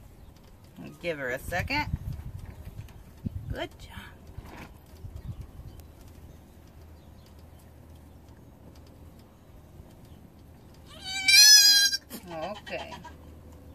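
A young goat bleats loudly.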